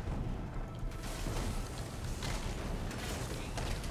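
A lightning spell crackles and zaps.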